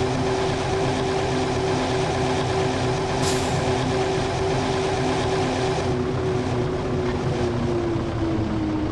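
A bus engine drones steadily at speed, its pitch dropping slightly near the end.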